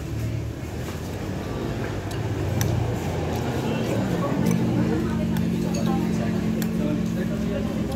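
A man slurps soup.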